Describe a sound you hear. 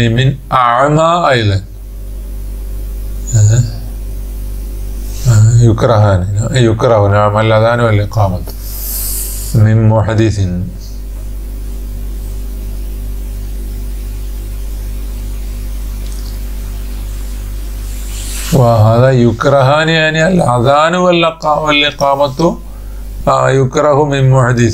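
A man speaks in a chanting, sing-song voice close to a microphone, with pauses.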